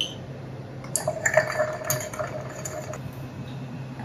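A bamboo whisk stirs tea in a cup.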